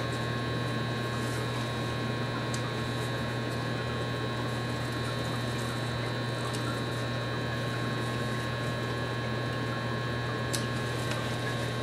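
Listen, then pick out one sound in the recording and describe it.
Pruning snips clip through plant stems.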